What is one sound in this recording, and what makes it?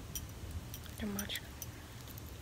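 A young woman speaks briefly up close.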